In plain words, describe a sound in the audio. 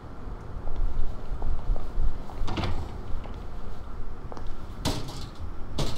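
A metal bin clatters over.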